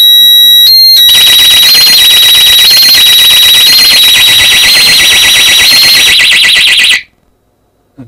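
An alarm siren screeches loudly and steadily, then cuts off.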